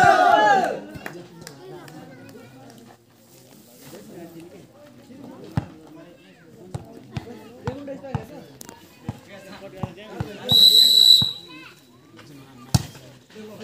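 Several young men chatter nearby.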